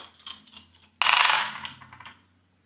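Dice clatter and roll onto a hard tray.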